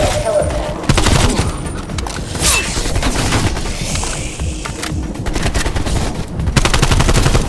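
A gun fires rapid bursts at close range.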